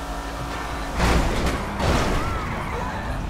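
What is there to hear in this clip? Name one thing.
A car crashes into a van with a loud thud.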